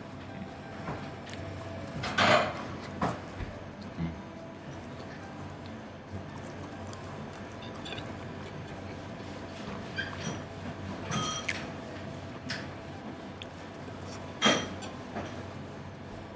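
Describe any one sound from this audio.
A man chews food with his mouth closed.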